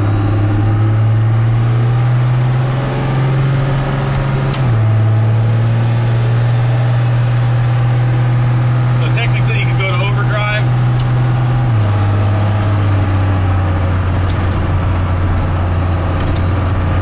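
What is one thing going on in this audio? An engine idles with a steady low hum, shifting pitch now and then.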